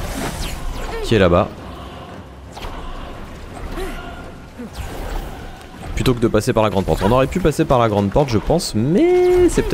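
Water splashes as a figure wades through a stream.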